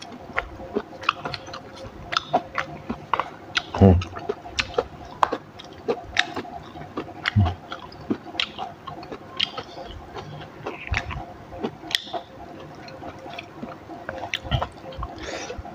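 A woman chews food loudly and smacks her lips close to a microphone.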